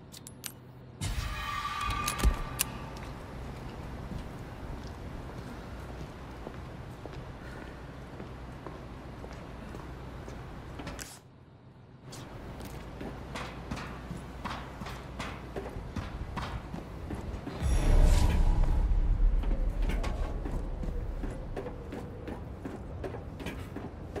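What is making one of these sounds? Footsteps walk across a hard metal floor.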